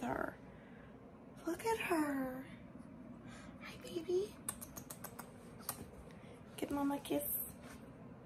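A young woman talks close by in a high, playful voice.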